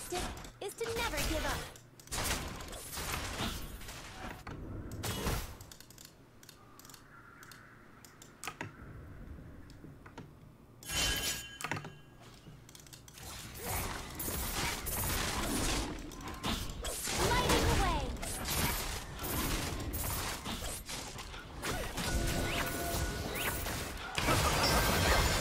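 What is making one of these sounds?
Game spells and attacks whoosh and crackle.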